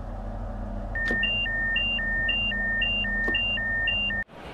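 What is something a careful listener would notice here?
A warning buzzer beeps rapidly and repeatedly.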